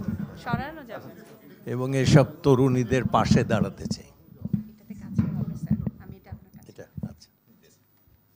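An elderly man speaks into a microphone over loudspeakers.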